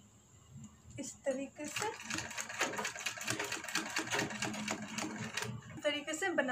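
A sewing machine runs in a fast, steady clatter of stitching.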